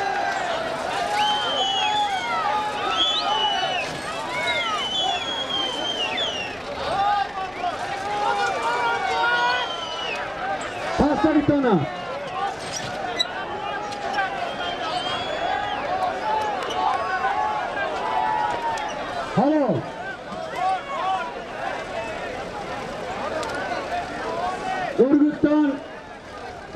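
Men whistle sharply through the crowd noise.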